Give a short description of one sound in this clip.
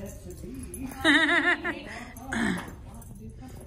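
A woman speaks to a dog in a high, cheerful voice nearby.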